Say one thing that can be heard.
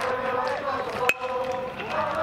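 A metal bat cracks against a baseball.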